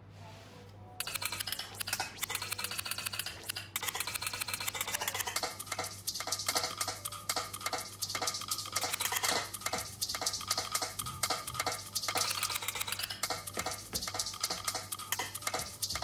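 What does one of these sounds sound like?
Electronic dance music plays loudly with a steady beat.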